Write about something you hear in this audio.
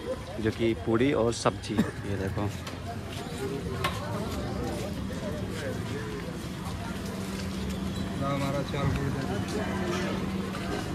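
A crowd of men murmurs and chatters outdoors.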